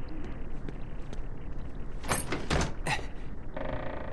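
A metal lever is pulled and clanks.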